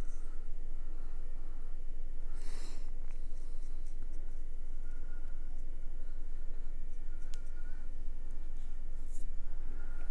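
A paintbrush softly taps and clicks against a small paint pot.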